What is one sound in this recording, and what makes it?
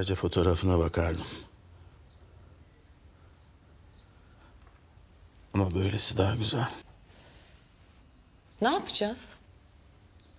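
A middle-aged man speaks in a low, calm voice close by.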